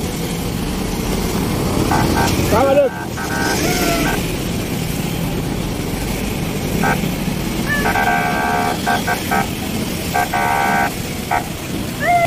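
Heavy traffic rumbles past at close range.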